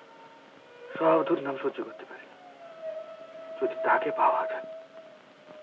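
A middle-aged man speaks in short, emotional bursts.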